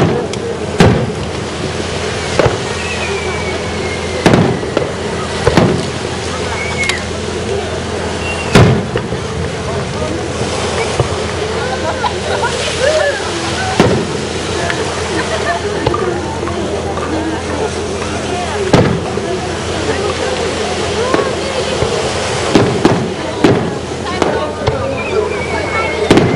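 Fireworks burst with loud booming bangs, echoing through the night air.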